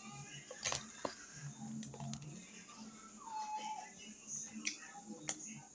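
A woman chews food close by, with soft smacking.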